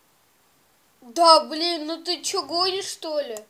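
A young boy speaks loudly and with animation close to the microphone.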